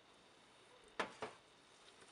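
Thick liquid pours into a plastic jug.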